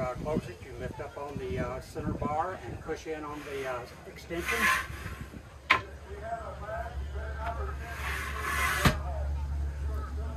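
An older man talks calmly, close by.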